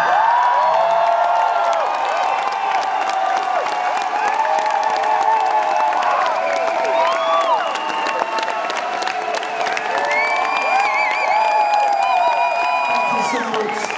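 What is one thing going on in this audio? Live music plays loudly from a stage, with wavering, gliding electronic tones.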